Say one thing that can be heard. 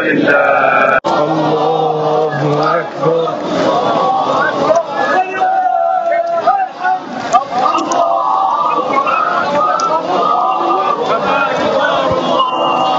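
A crowd of people talks and calls out.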